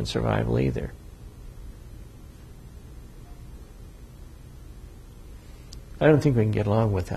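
An elderly man speaks calmly into a clip-on microphone.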